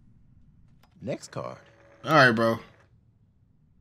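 A man speaks calmly and briefly.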